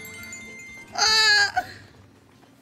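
A young woman squeals loudly and high, close to a microphone.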